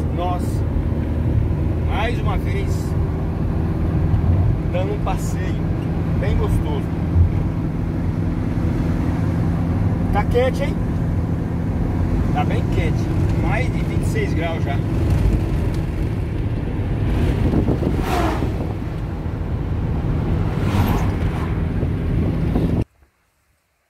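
A car engine hums and tyres roll steadily on a road.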